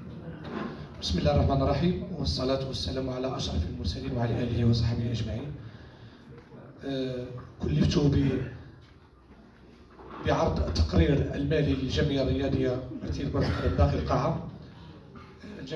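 A man speaks calmly into a handheld microphone.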